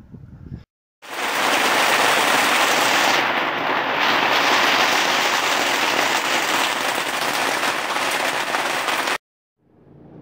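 Heavy rain pours down steadily.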